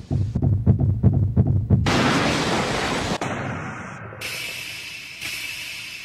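A boy shouts in alarm.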